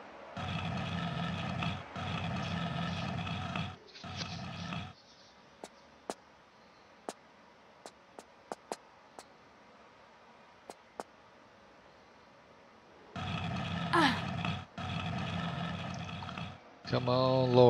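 A heavy stone block scrapes along a stone floor.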